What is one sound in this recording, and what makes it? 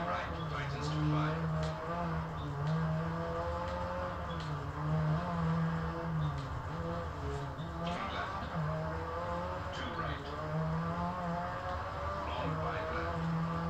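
A rally car engine drones steadily, revving up and down.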